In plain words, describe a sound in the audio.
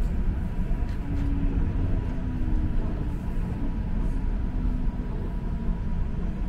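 A streetcar's motor whines softly.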